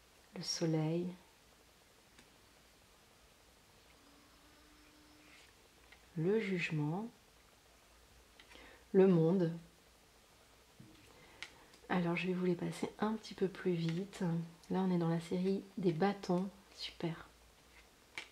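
Playing cards slide softly against each other as they are dealt.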